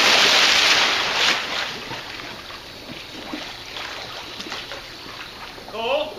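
Water laps and sloshes in a pool.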